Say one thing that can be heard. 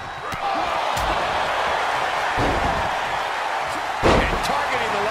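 Heavy thuds land as wrestlers slam onto a ring mat.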